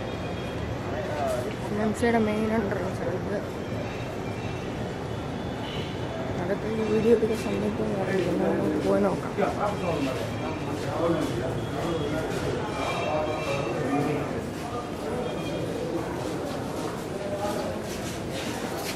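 Several men talk nearby in an echoing hall.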